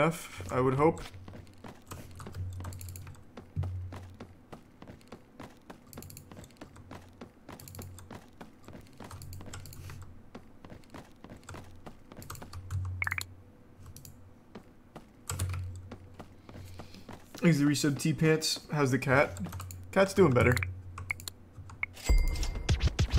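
Footsteps tap quickly and steadily on wooden boards.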